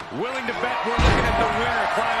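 A metal ladder crashes down with a loud clang.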